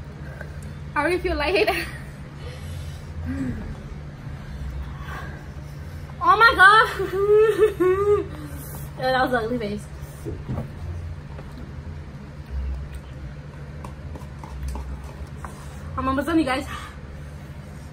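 Another young woman talks and laughs close to the microphone.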